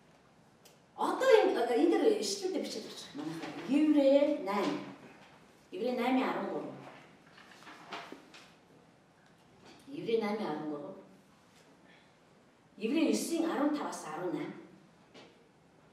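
A middle-aged woman reads out in short phrases into a microphone.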